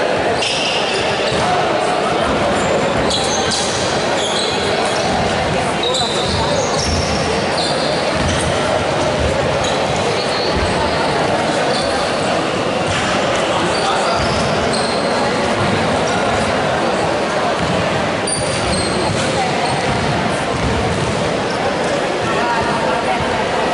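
A crowd of young players and onlookers chatters loudly in a large echoing hall.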